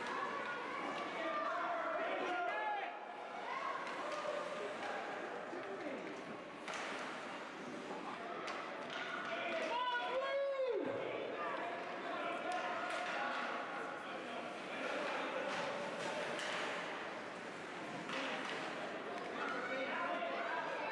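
Spectators chatter and shout across a large echoing rink.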